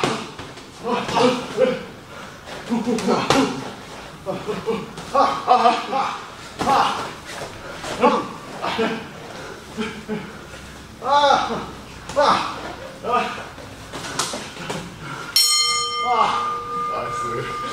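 Boxing gloves thud against each other.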